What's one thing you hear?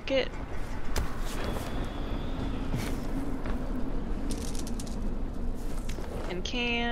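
Footsteps thud quickly across hard ground.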